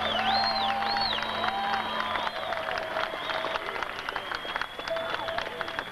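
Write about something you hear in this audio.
A guitar plays a bending, wailing melody.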